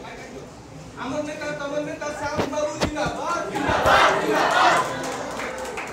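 A young man calls out loudly in an echoing room.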